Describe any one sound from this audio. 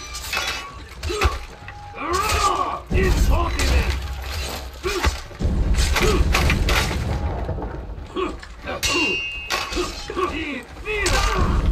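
Swords and shields clash and clang repeatedly in a chaotic melee.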